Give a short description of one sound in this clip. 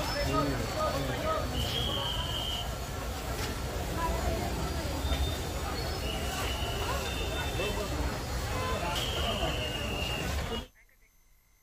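A crowd of men talks and murmurs nearby.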